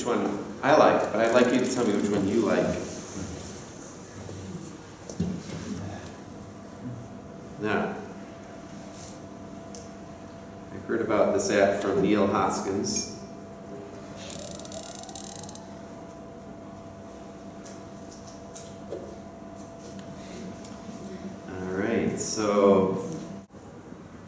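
A man speaks calmly into a microphone in a room with some echo.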